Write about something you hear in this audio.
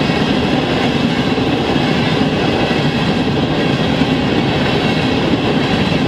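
Freight cars rumble and clatter steadily along the rails close by.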